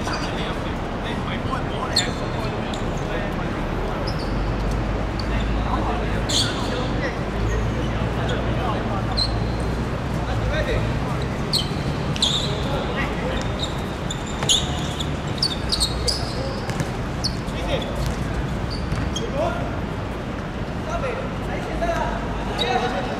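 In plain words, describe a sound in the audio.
Young men shout and call out across an open outdoor court.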